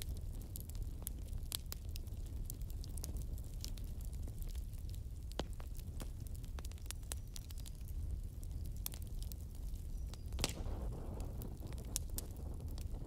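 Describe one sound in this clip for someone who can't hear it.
A wood fire crackles and pops with sharp snaps.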